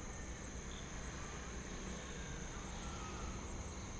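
A motorbike engine hums as it rides by.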